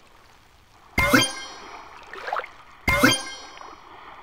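Short bright game chimes ring out.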